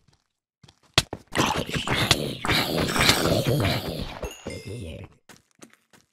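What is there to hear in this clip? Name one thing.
A sword strikes a creature with sharp, heavy thuds.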